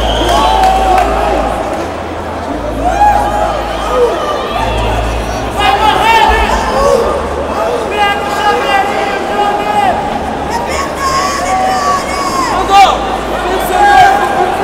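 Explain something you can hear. Men shout nearby.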